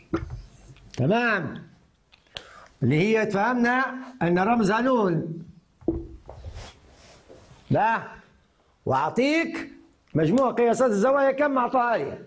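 A middle-aged man speaks calmly and clearly, as if explaining.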